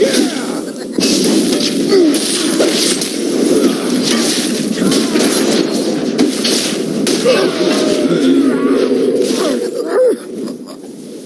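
Spells and blows clash and crackle in a fast fight.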